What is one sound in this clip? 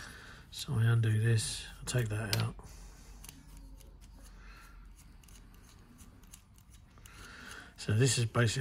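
Small metal parts click softly as an airbrush is handled.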